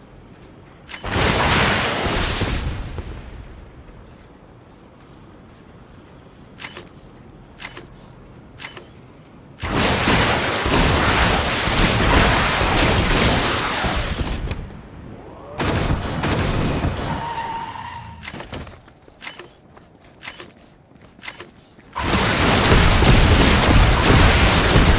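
Loud gunfire and blasts burst out in rapid bursts.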